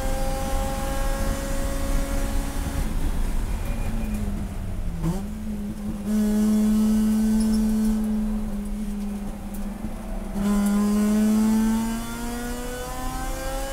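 A race car engine roars loudly from inside the cabin, revving up and down through the gears.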